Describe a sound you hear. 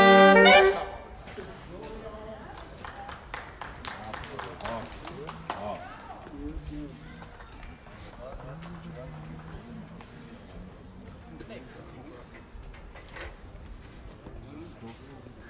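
A group of saxophones plays a tune outdoors.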